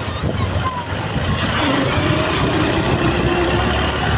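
A van engine rumbles as it drives past close by.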